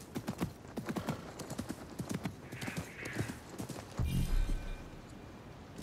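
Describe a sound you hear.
A horse's hooves clop on sand.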